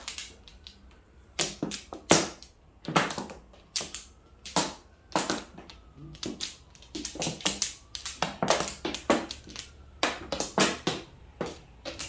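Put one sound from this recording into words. Mahjong tiles clack sharply as hands place and flip them on a table.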